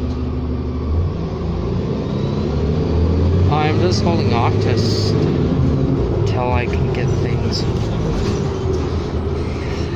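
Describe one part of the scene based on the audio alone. A bus engine revs up as the bus pulls away.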